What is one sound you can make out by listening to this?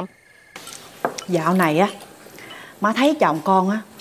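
An older woman speaks with animation.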